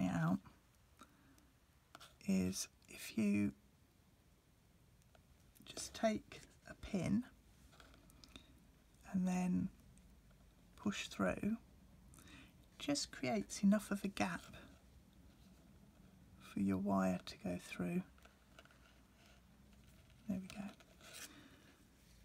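Thin metal wire rustles and clicks softly as hands twist it.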